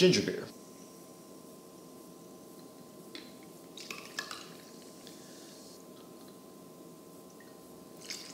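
Liquid pours from a bottle into a cup.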